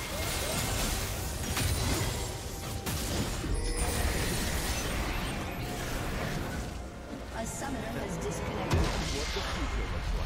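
Fantasy game battle effects clash, zap and burst in quick succession.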